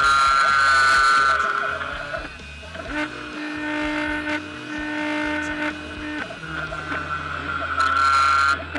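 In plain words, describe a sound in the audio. A milling machine whines loudly as its spindle cuts, its pitch shifting as the cutter moves.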